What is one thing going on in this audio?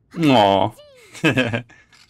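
A young man laughs softly close by.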